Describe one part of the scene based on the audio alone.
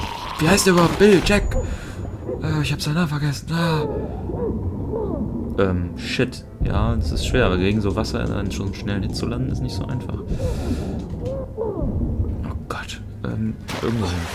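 A young woman groans and gasps, straining underwater.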